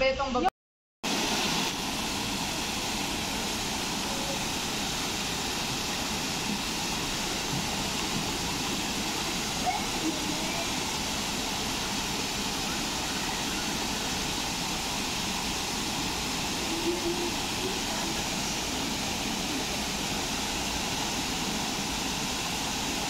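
A stream rushes steadily over rocks.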